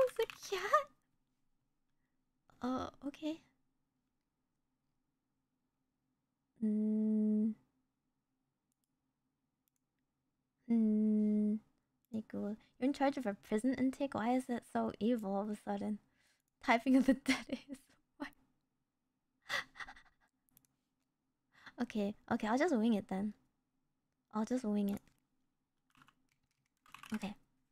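A young woman speaks playfully into a close microphone, in short bursts.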